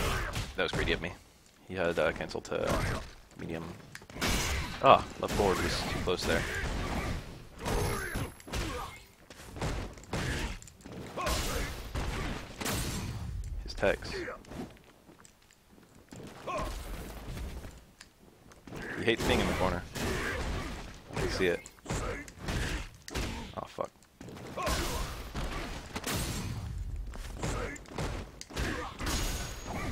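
Punches and kicks land with sharp, punchy game hits.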